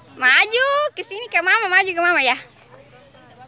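A young girl calls out in a high, sing-song voice close by.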